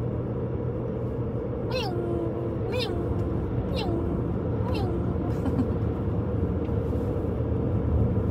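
A car engine hums steadily as tyres roll along the road.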